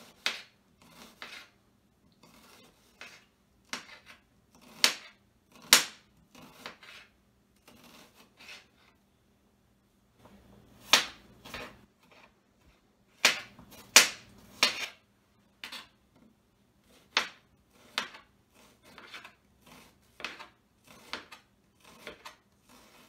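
A knife chops on a cutting board with sharp, uneven taps.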